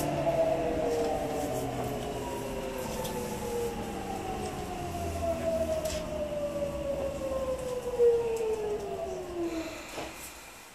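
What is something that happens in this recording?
An electric train's motor whines steadily lower in pitch as the train slows to a stop.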